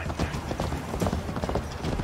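Hooves thud on wooden planks.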